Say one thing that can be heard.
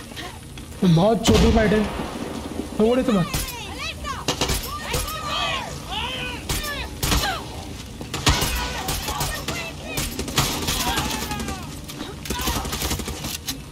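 Rapid gunshots fire in bursts.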